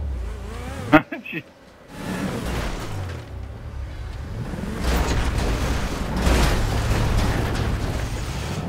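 A sports car engine roars and revs.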